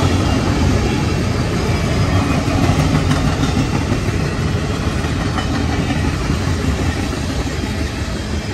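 A long freight train rumbles and clatters steadily past close by.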